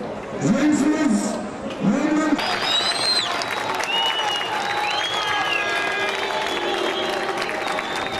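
A large crowd cheers and whistles in an open-air stadium.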